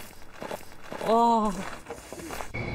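A young man cries out loudly.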